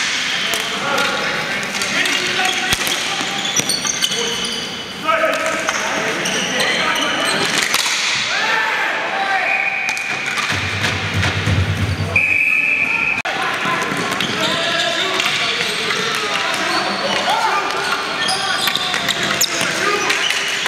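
Players shout to each other across the hall.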